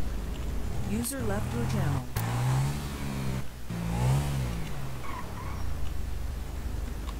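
A motorcycle engine revs up and down as the bike pulls away.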